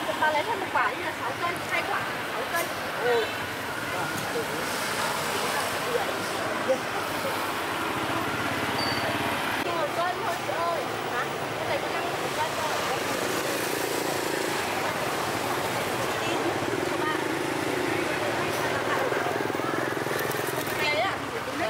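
Plastic bags rustle as vegetables are handled.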